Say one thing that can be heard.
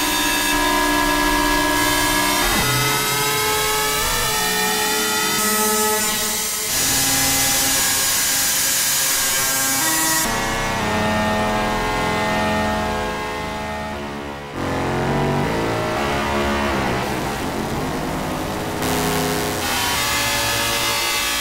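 Electronic synthesizer tones play steadily, shifting in pitch and texture.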